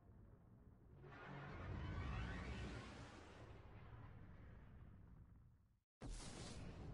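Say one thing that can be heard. A spaceship engine roars loudly as it boosts, then fades.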